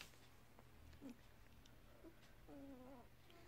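Newborn puppies whimper and squeak softly.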